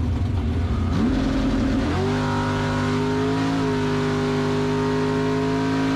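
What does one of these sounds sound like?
A race car engine roars loudly from inside the cabin, its pitch rising sharply and then holding a steady high drone.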